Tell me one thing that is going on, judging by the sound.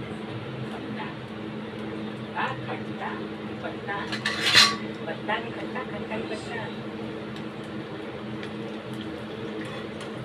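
Food sizzles in a small pan.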